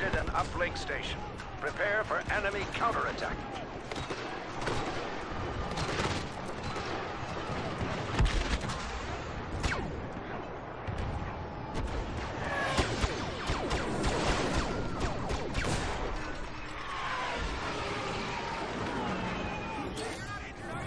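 Blaster gunfire crackles in rapid bursts.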